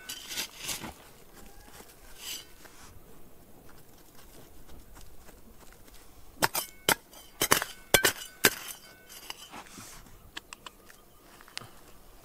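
Small stones rattle as fingers brush through dry gravel.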